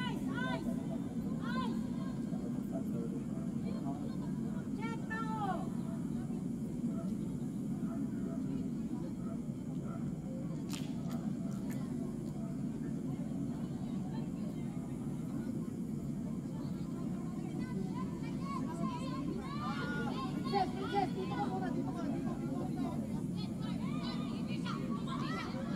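Young women shout to each other from across an open field.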